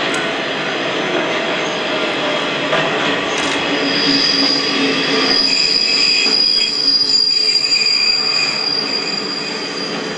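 A diesel train rumbles slowly past close by.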